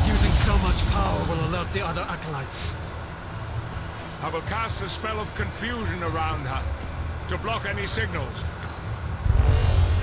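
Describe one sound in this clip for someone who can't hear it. An elderly man speaks in a low, calm voice.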